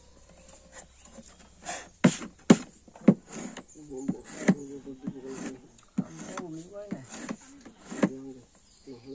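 A hammer taps sharply on metal.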